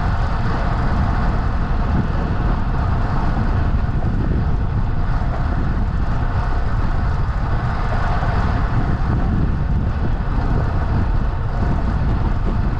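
Wind rushes and buffets loudly while riding outdoors.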